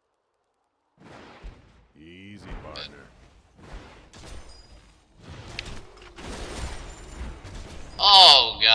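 Game spells and hits crackle and clash.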